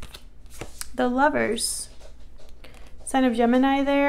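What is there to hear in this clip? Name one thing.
A card is set down on a table with a light tap.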